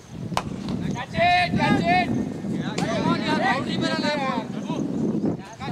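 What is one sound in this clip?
Men on the field shout loudly from a distance.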